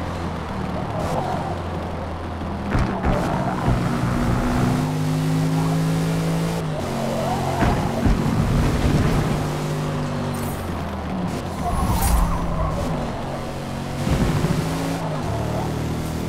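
Tyres squeal through the bends.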